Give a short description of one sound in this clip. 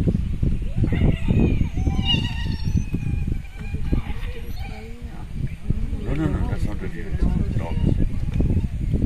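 Wild dogs give high whistling calls.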